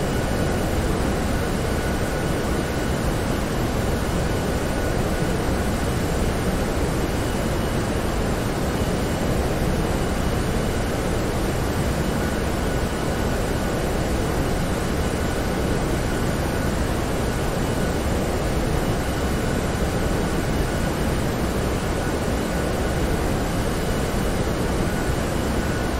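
Jet engines roar steadily, heard from inside an aircraft.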